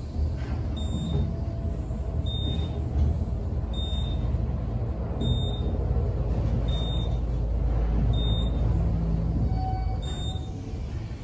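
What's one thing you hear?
An elevator chimes with a short high beep at each floor.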